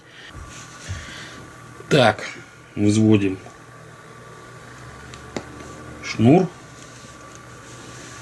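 Small objects click and tap softly as hands handle them on a cloth surface.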